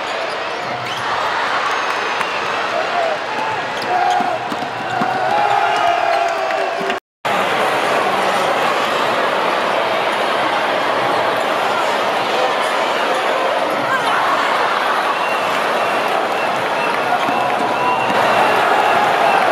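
A large crowd cheers and roars in a large echoing arena.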